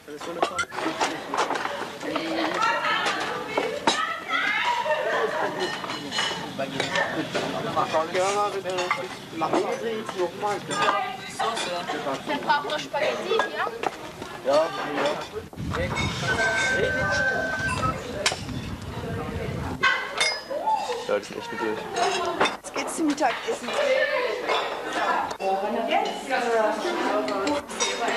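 Young people talk casually nearby.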